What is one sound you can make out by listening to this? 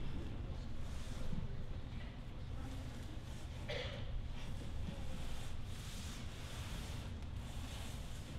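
Foam mats thud and rustle as they are dragged and unfolded across a stage floor.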